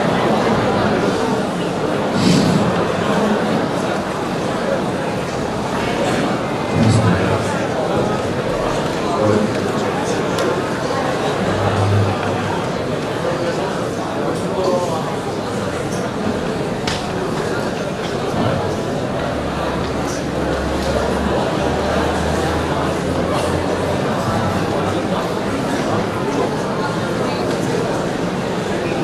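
A large audience chatters and murmurs in a big echoing hall.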